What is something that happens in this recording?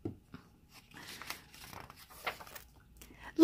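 A page of a book rustles as it is turned.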